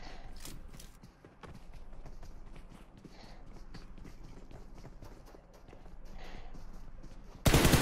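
Quick footsteps thud across a wooden floor.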